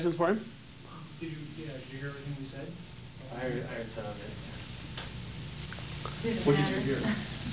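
A middle-aged man speaks calmly to a room, heard from across the room.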